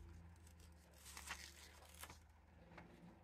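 Paper sheets rustle and slide against each other close by.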